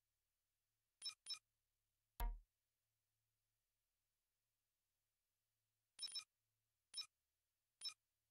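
Short electronic menu clicks sound as options are selected.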